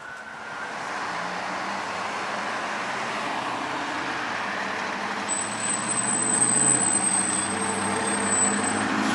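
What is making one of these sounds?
A fire engine's diesel engine rumbles close by.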